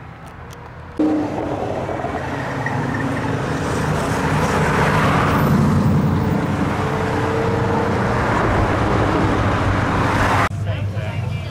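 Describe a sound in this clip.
An old car's engine rumbles as it drives past.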